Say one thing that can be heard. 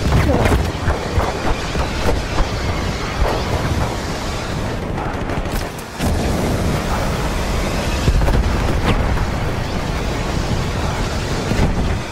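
A flamethrower roars in a steady jet of fire.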